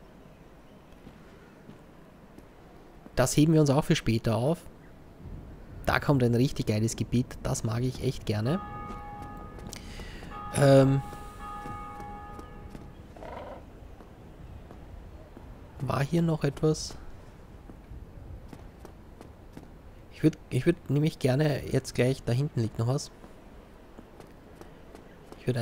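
Bare footsteps pad softly on stone.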